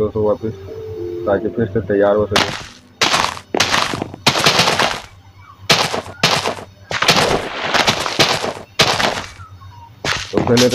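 Soft digging thuds come as seeds are planted in soil.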